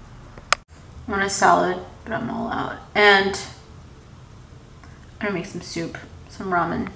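A young woman speaks calmly close to the microphone.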